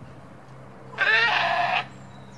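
A goat bleats loudly nearby.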